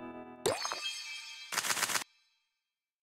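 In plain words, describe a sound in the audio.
A cheerful victory jingle chimes.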